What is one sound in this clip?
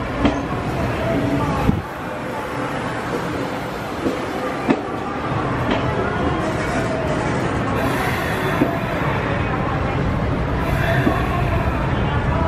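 A train rolls past close by with a steady rumble.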